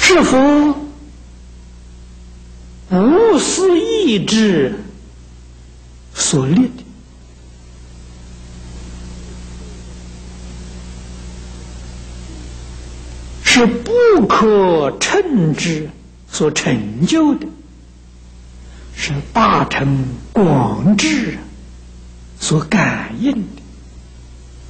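An elderly man speaks calmly into a microphone, in slow phrases with long pauses.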